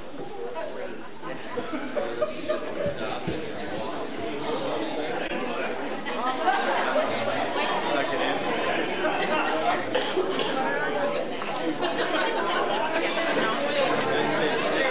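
A crowd of people chatters and moves about.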